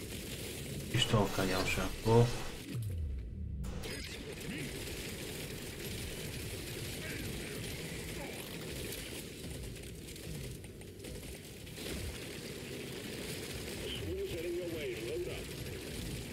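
A man speaks into a nearby microphone with animation.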